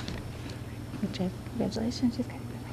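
A woman speaks briefly through a microphone.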